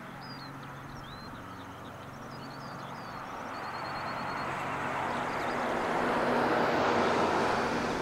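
A twin-turboprop airliner drones in to land, its roar growing louder as it approaches.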